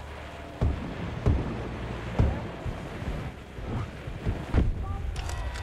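Rifle shots boom loudly, one after another.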